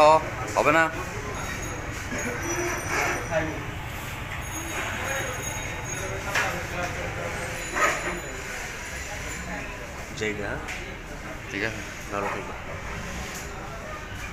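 Metal tools clink and scrape against a motorcycle.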